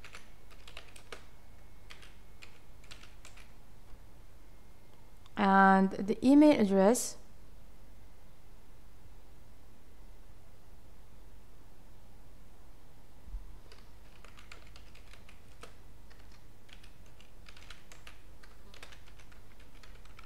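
Keys clack on a computer keyboard in quick bursts.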